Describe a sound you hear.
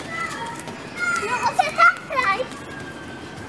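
A boy calls out excitedly close by.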